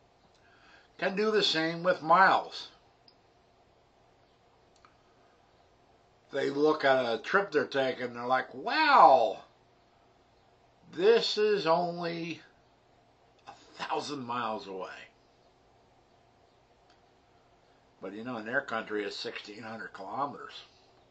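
A middle-aged man speaks calmly into a nearby microphone, in short bursts with pauses.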